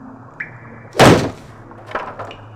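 Wooden planks clatter as they are picked up.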